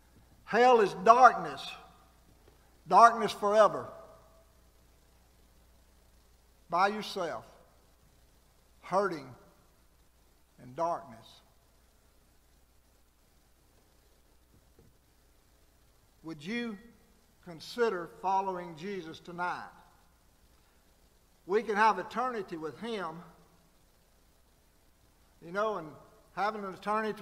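An elderly man preaches with emphasis into a microphone, pausing between phrases.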